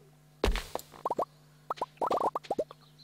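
Short rising blips pop one after another as items are picked up.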